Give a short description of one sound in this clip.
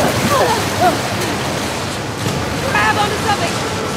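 Water rushes and churns loudly.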